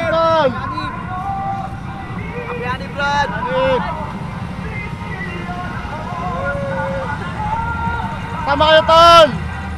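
A young man talks loudly and with animation, close by.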